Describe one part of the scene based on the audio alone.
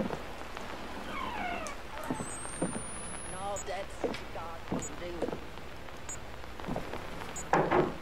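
A wooden door creaks slowly open.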